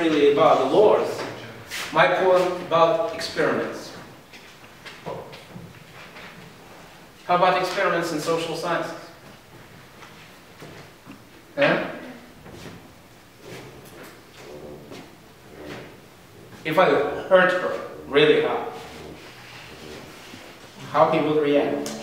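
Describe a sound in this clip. An older man lectures with animation in a room with a slight echo, pausing between phrases.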